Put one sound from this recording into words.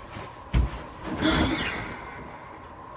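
Bedcovers rustle under a person's body.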